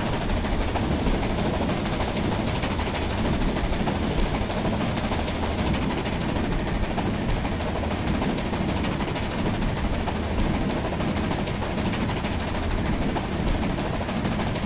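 A steam locomotive chugs heavily and steadily.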